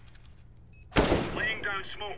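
A grenade bursts with a sharp bang.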